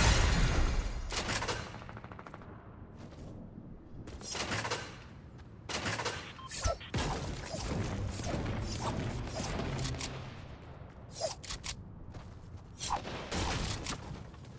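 A pickaxe strikes hard surfaces with sharp clangs.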